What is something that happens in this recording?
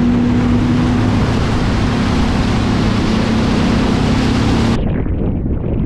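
A boat engine roars steadily while speeding over water.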